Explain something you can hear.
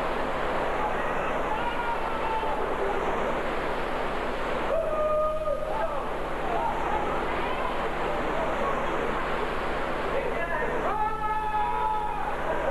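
A man shouts nearby over the rushing water.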